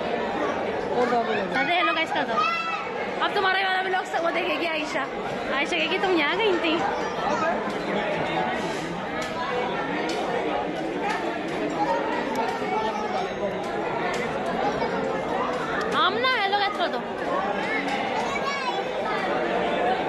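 Young children talk and shout excitedly close by.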